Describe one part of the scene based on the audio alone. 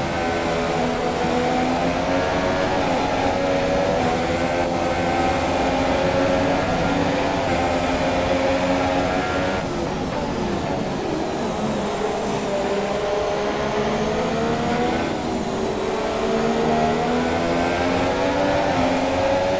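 A racing car engine screams at high revs, rising and falling as gears shift.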